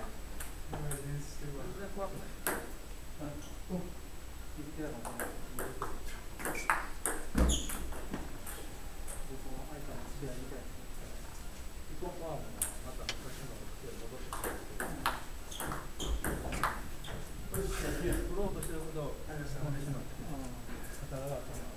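A ping-pong ball clicks back and forth off paddles and a table in a quick rally.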